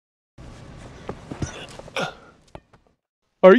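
Bare feet thud and scuff on sand.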